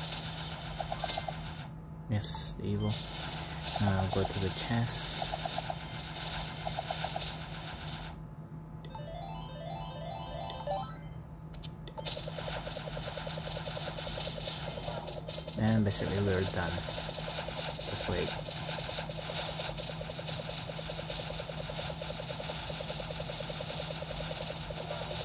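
Video game music plays steadily.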